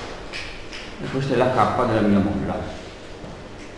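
A man speaks calmly in an echoing room.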